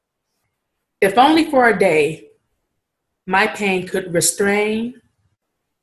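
A woman speaks calmly and close to the microphone, in short phrases.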